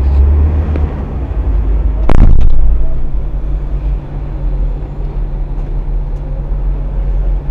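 An engine idles with a low, steady rumble.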